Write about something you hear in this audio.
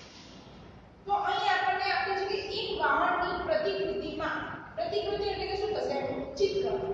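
A young woman speaks clearly and calmly nearby.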